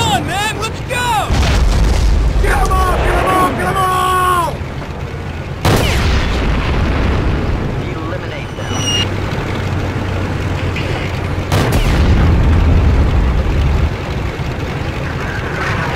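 Tank engines rumble low and steady.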